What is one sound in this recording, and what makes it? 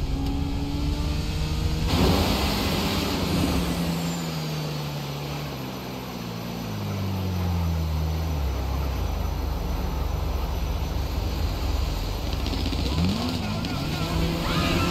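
A motorcycle engine roars, its pitch slowly falling and then holding steady.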